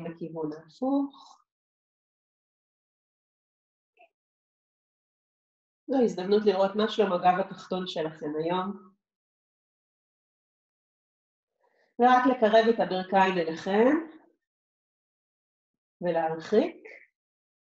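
A woman speaks calmly and slowly, close to a microphone, with pauses.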